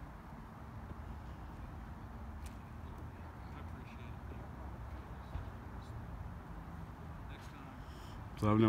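Men talk quietly at a distance outdoors.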